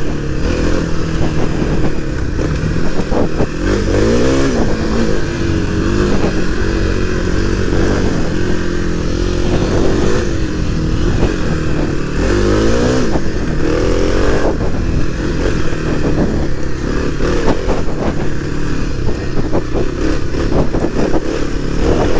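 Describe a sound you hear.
Tyres crunch over leaves and dirt on a forest trail.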